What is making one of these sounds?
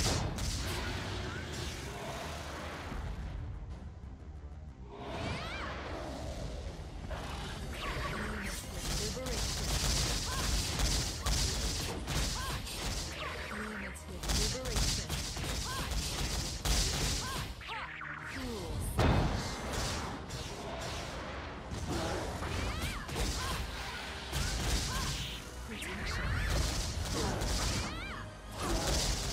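Game attacks crash and slash in quick bursts.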